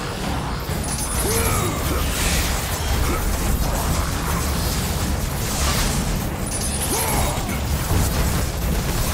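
Blades whoosh and slash repeatedly in a video game fight.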